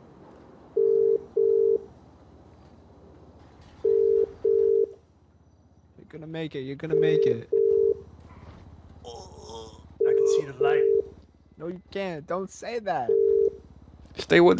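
A phone line rings with short repeated beeps.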